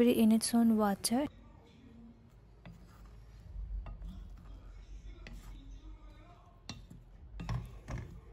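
A wooden spoon stirs and scrapes strawberries in a pan.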